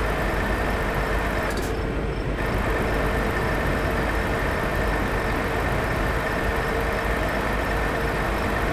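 Tyres roll on the road with a steady rumble.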